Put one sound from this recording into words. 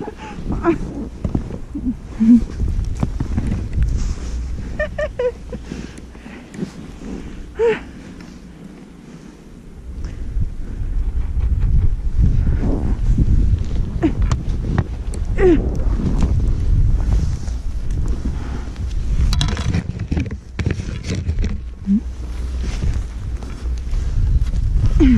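Skis hiss and scrape through deep powder snow.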